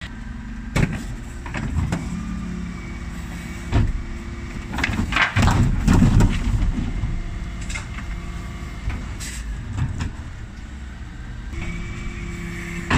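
A garbage truck's engine idles steadily.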